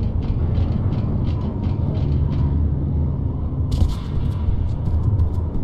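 A young man talks steadily into a close microphone.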